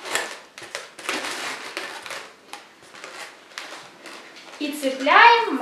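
Rubber balloons squeak and rub as they are twisted.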